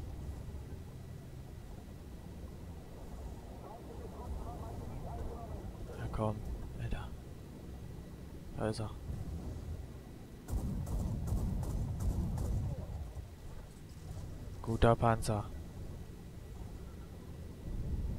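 An engine rumbles low and steady.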